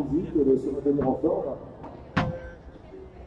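A ball is struck sharply with a racket, several times.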